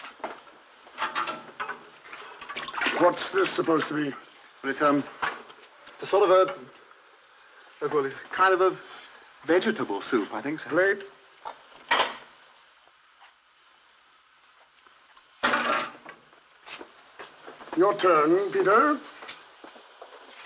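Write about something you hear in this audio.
Men speak firmly, in turns.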